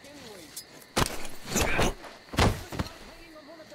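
A body thuds heavily to the ground in a close struggle.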